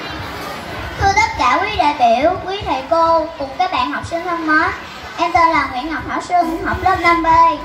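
A woman sings loudly through a loudspeaker.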